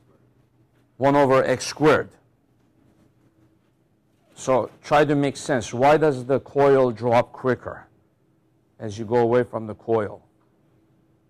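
A man speaks calmly and clearly, in short bursts with pauses.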